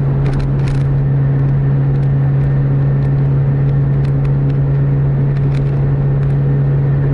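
A car engine drones steadily at high speed.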